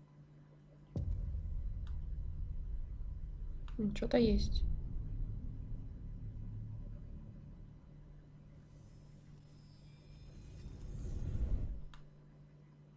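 Deep booming music swells with a whoosh and fades away.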